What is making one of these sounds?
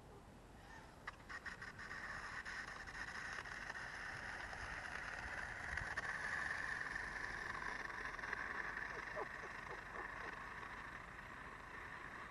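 A small electric motor whines steadily as a toy car races over pavement.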